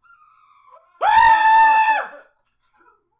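A young man makes a loud, drawn-out vocal sound close by.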